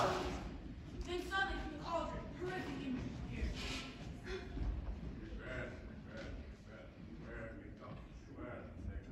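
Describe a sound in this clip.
Young performers speak and call out in a large echoing hall.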